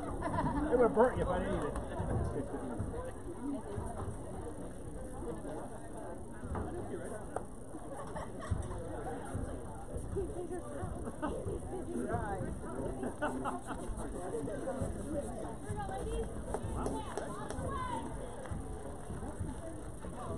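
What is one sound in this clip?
A crowd of young women cheers and chatters outdoors across an open field.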